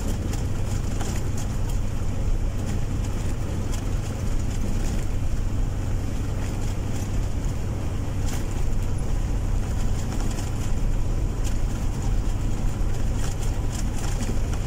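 A vehicle's engine drones steadily from inside the cab while driving.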